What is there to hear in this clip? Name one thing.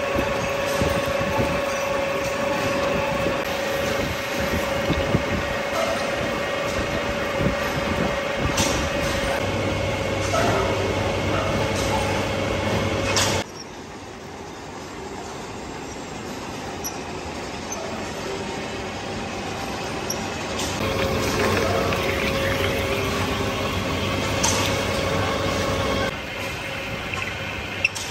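A large pillar drill whines as its twist drill bores through a steel billet.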